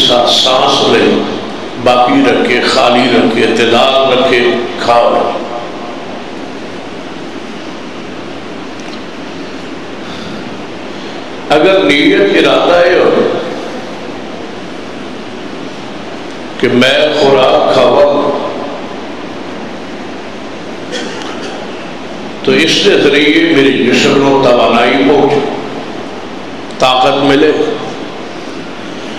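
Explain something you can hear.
A man speaks with fervour through a microphone in bursts, his voice echoing through loudspeakers.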